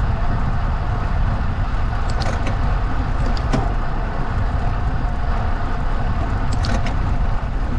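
Tyres hum on asphalt.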